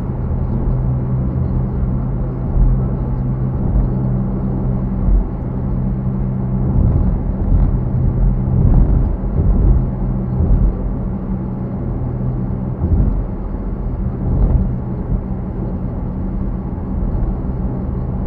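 Tyres roar on the road.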